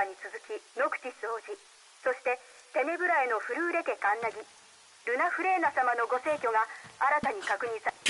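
A man reads out news through a small phone speaker.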